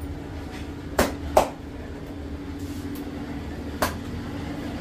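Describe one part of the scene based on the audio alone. Hands thump and pat firmly on a man's back.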